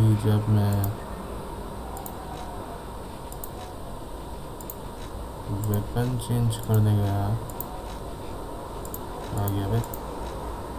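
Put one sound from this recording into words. Soft interface clicks tick as menu selections change.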